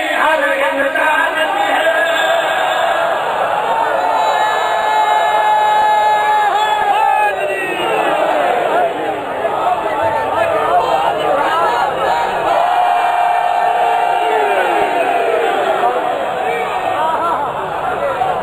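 A large crowd of men chants loudly with raised hands.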